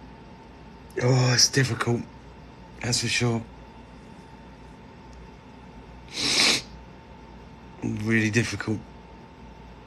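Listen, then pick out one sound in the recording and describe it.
A middle-aged man speaks in short bursts, close to a phone microphone.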